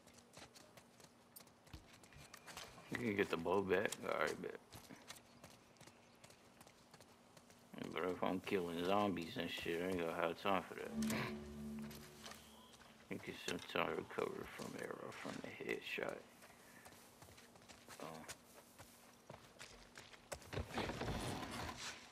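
Footsteps tread on wet ground and grass.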